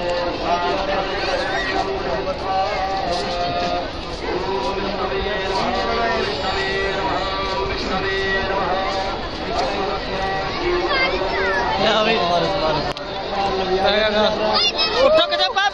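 A large crowd sings a slow hymn together outdoors.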